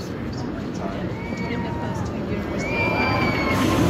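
A crowd of riders screams loudly as a roller coaster drops.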